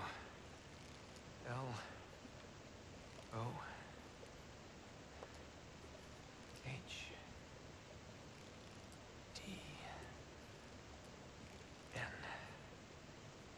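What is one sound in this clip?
A young man slowly spells out letters in a low voice.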